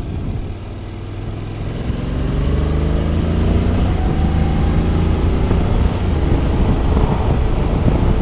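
Wind rushes past the rider's helmet.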